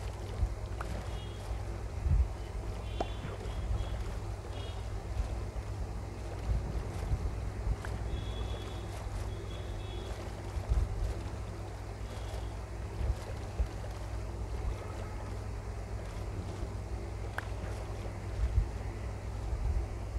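Water splashes softly as a game character swims.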